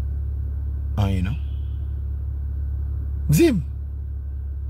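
A man speaks briefly and expressively close to a phone microphone.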